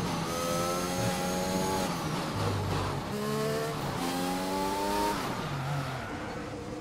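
A racing car engine screams at high revs, rising as it shifts up through the gears.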